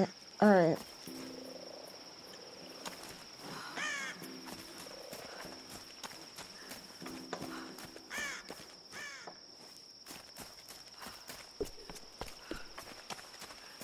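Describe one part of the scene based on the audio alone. Footsteps crunch on forest ground.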